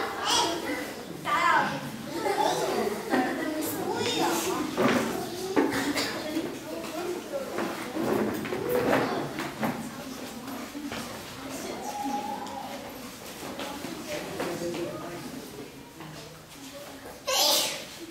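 A woman speaks gently to the children.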